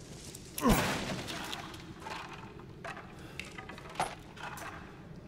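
Wooden splinters clatter to the ground.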